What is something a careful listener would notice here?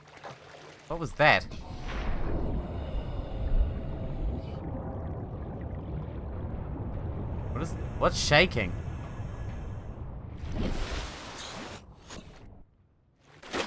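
Water rumbles and bubbles steadily around a swimmer underwater.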